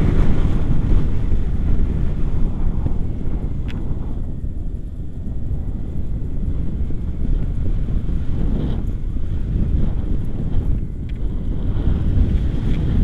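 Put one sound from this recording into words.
Strong wind rushes and buffets steadily outdoors.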